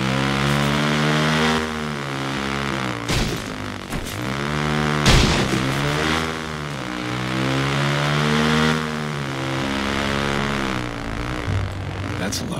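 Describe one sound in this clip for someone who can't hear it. A motorcycle engine revs up and down as it rides.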